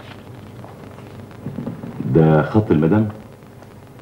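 Paper rustles as a sheet is handed over.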